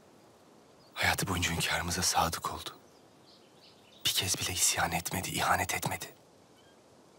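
A young man answers in a low, serious voice up close.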